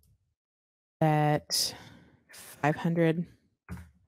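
A woman speaks with animation into a microphone, close by.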